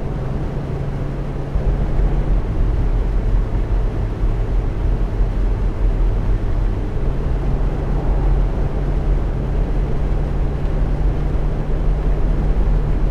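A large engine hums steadily as a heavy vehicle drives along a road.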